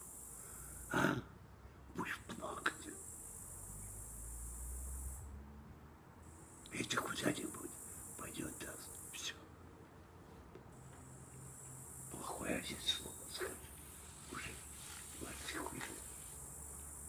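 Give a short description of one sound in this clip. An elderly man speaks close by, in short bursts.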